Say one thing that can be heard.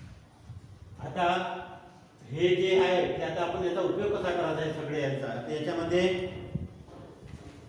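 A man speaks clearly and steadily into a clip-on microphone, close by.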